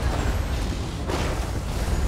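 Lightning crackles and zaps.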